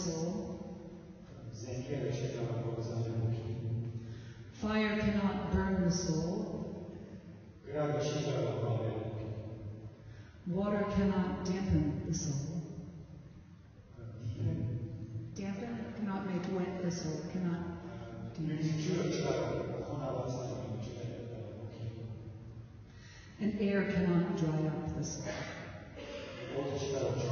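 A woman sings into a microphone with feeling.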